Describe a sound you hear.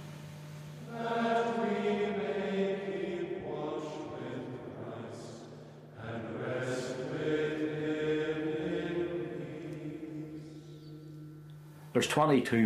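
A choir of men chants slowly in a large echoing hall.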